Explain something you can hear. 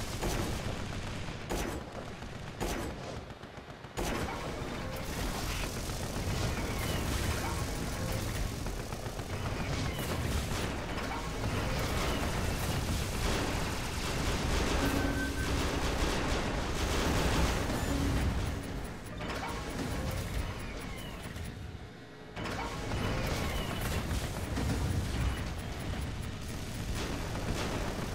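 Low explosions rumble in a game.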